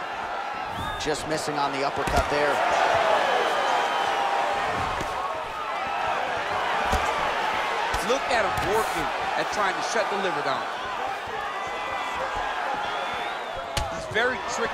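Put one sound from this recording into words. Punches and kicks land with short dull thuds.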